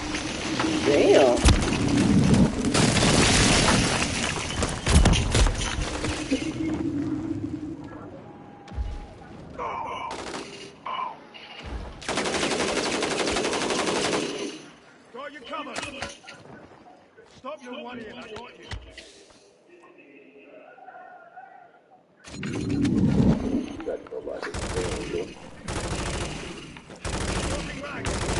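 Gunfire and explosions crack and boom loudly.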